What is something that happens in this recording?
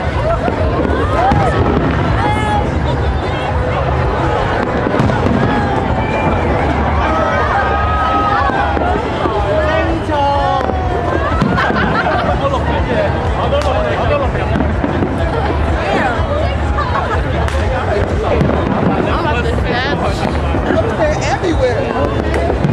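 Fireworks burst and boom overhead.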